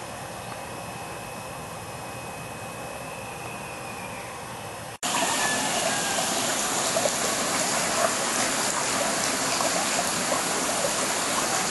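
Water bubbles and churns steadily underwater.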